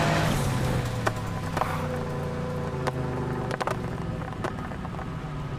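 Car exhaust pops and crackles.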